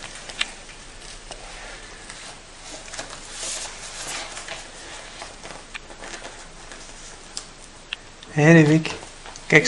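Paper rustles as a boy handles a sticker sheet.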